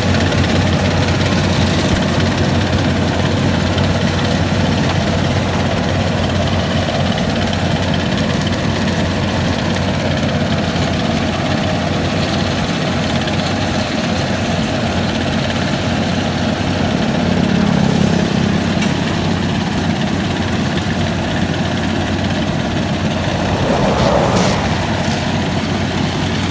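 A large diesel engine rumbles steadily close by.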